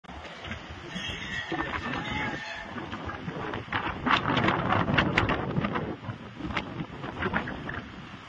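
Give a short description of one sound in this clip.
Strong wind roars and gusts outdoors.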